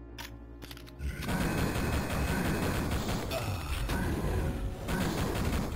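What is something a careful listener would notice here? A shotgun fires repeatedly.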